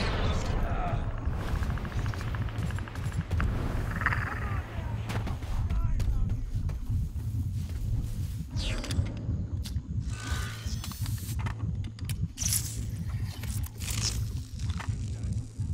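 Footsteps rustle through dense undergrowth.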